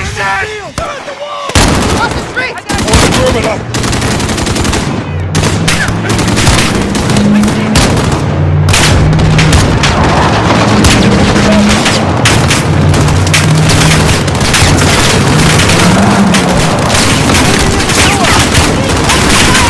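A rifle fires loud single shots, one after another.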